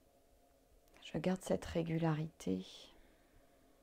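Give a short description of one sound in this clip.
An older woman speaks softly and briefly, close to a microphone.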